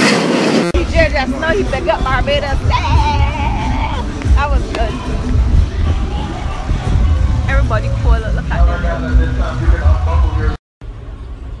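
Young women chatter and laugh loudly close by.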